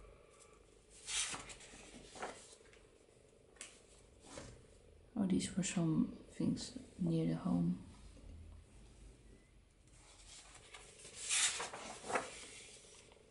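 Paper pages rustle as a sketchbook page is turned.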